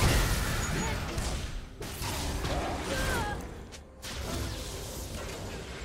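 Video game spells burst and crackle in a busy fight.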